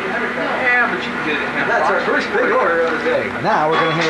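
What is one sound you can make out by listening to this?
A man talks and laughs close by.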